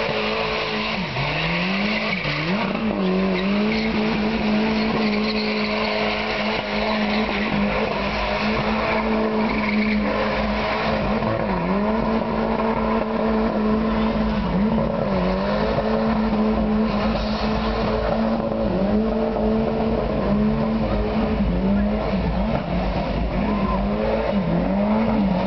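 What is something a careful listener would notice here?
A car engine roars loudly at high revs, dipping and rising again and again.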